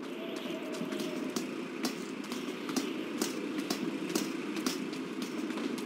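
Boots clank on metal ladder rungs in a steady rhythm.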